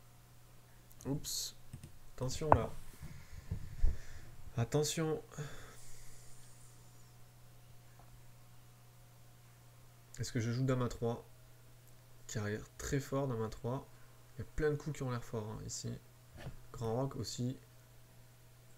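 A man speaks calmly and thoughtfully into a microphone, in short bursts with pauses.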